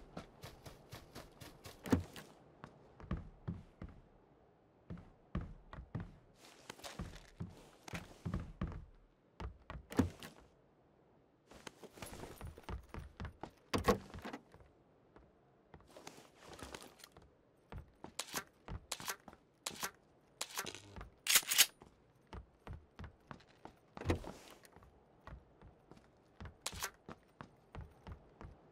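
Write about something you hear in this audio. Footsteps thud on wooden floors at a quick pace.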